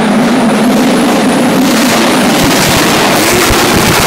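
A car engine whines as it speeds past close by.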